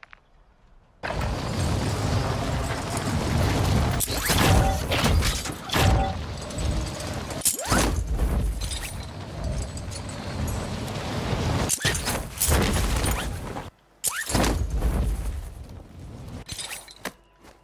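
Wind rushes loudly past during a fast fall through the air.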